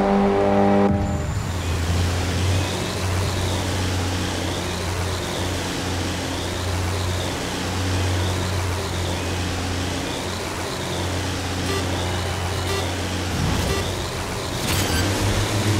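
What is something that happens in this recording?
Racing engines idle with a low, steady drone.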